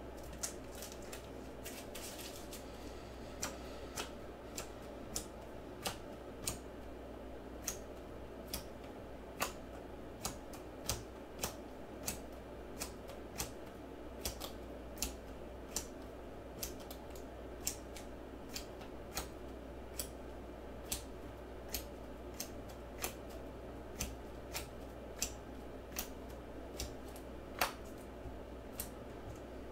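Trading cards snap and click as they are flipped through by hand.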